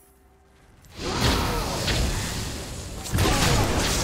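A fiery spell explodes with a loud whoosh.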